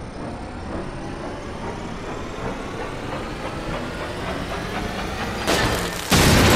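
An electronic device beeps, rising steadily in pitch.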